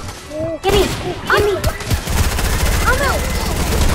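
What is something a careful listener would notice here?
A shotgun fires loudly.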